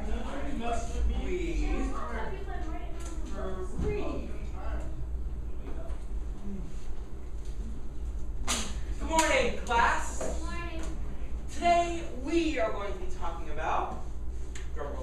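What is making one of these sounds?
A man speaks with animation to an audience in a hall.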